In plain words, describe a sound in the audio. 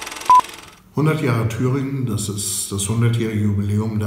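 An elderly man speaks calmly close to the microphone.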